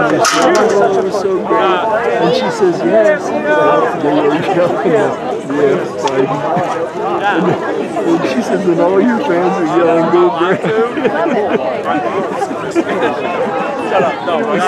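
Many voices of spectators and players chatter and call out nearby, outdoors.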